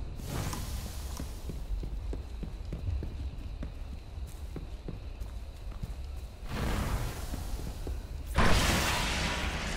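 Footsteps tread over rough ground.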